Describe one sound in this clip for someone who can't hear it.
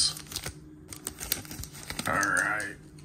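A plastic wrapper crinkles and tears.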